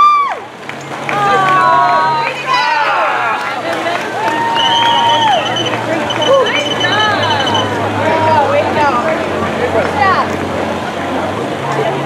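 A crowd of spectators cheers and whoops outdoors.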